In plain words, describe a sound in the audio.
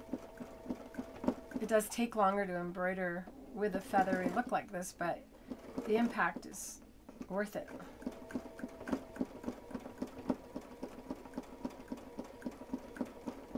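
A sewing machine stitches with a fast, steady rattle.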